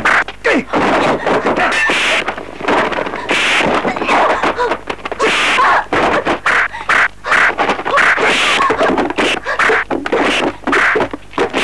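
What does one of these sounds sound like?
Men shout and grunt as they fight.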